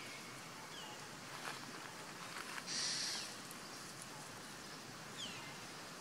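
A small monkey's feet rustle through dry leaves.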